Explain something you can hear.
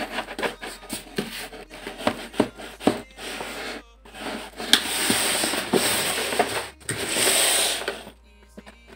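Packing tape tears loudly off a cardboard box.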